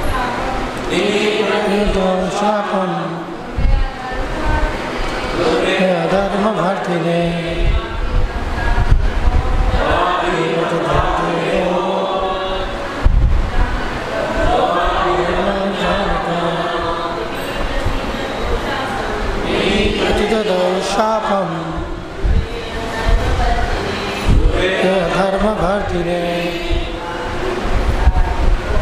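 A man speaks steadily into a microphone, heard through a loudspeaker.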